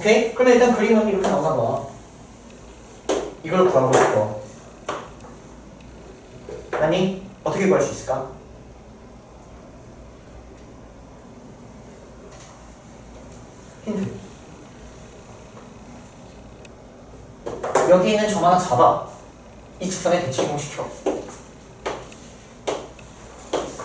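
Chalk taps on a board.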